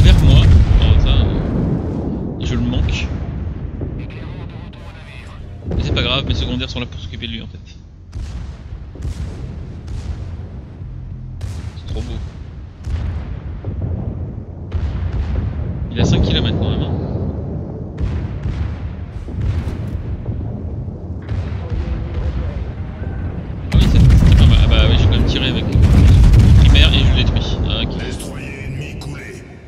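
Heavy naval guns fire in loud booming salvos.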